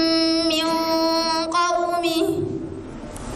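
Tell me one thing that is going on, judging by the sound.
A young woman recites in a long, melodic chant through a microphone.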